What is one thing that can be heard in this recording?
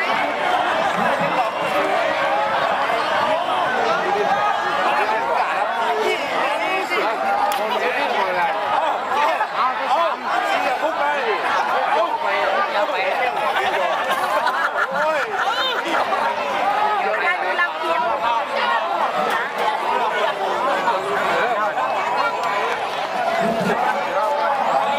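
A large crowd of people shouts and cheers loudly outdoors.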